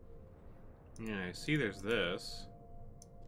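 A man speaks briefly and with animation into a microphone close by.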